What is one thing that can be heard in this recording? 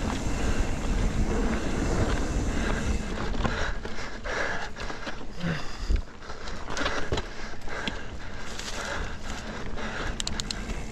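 Wind rushes past a moving bicycle outdoors.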